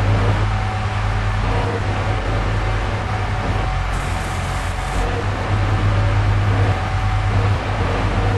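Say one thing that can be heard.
A car engine hums steadily while driving through an echoing tunnel.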